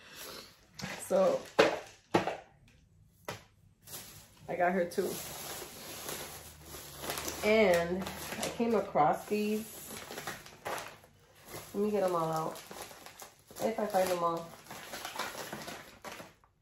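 A middle-aged woman talks calmly and close to the microphone.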